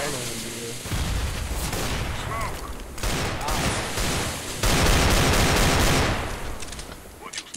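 A smoke grenade hisses loudly.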